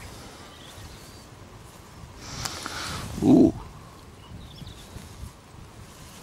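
Fingers rub and crumble soil off a small object.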